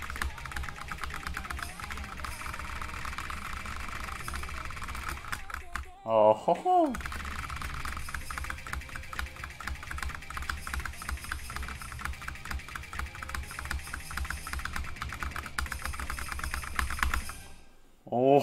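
Keyboard keys clatter in fast, rapid clicks.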